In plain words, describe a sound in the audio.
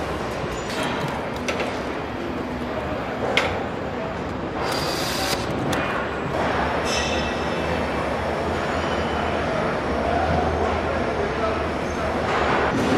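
Factory machinery hums and clatters steadily in a large echoing hall.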